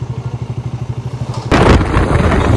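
A motorcycle engine idles with a steady throb.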